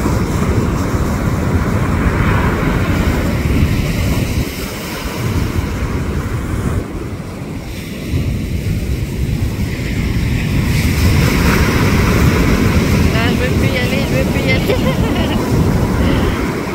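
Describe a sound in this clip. Shallow surf washes in and out over a sandy beach.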